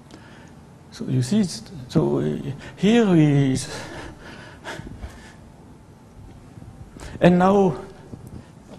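An elderly man speaks slowly and calmly, as if lecturing.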